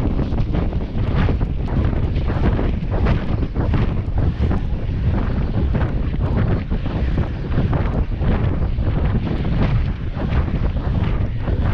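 Bicycle tyres crunch over packed snow.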